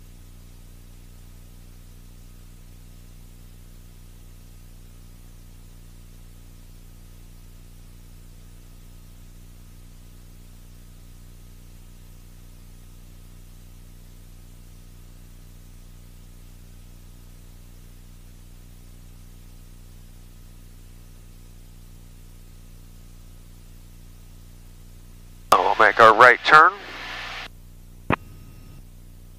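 A small plane's engine drones steadily and low.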